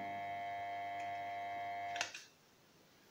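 An electric pump motor hums steadily, then stops.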